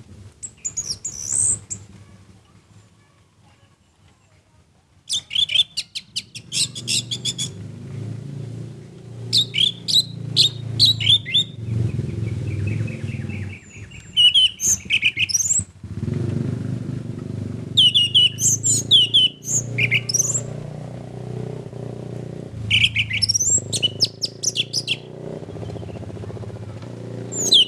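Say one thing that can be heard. A small bird sings loud, rapid bursts of chirps and trills close by.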